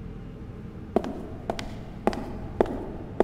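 Footsteps tap on a hard stone floor in a large echoing hall.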